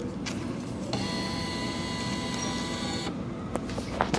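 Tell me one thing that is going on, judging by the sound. A vending machine whirs as it draws in a banknote.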